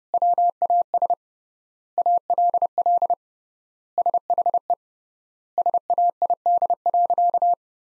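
Morse code beeps on a single steady tone, in quick bursts of short and long signals with pauses between.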